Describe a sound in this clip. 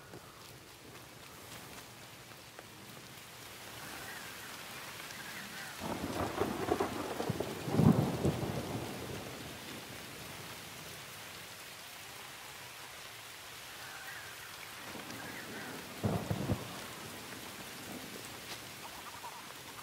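Wind gusts through trees outdoors.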